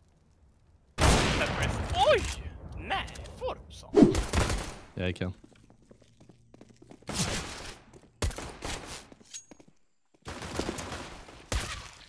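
Gunshots fire sharply and loudly.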